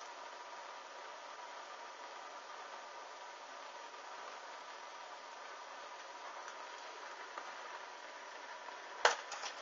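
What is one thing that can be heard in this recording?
A small flame flickers and crackles softly.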